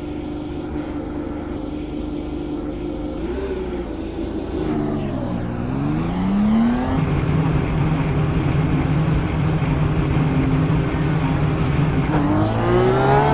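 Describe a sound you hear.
A race car engine idles steadily.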